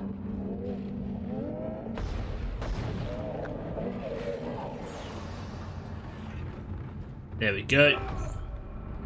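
Gunfire blasts in a video game.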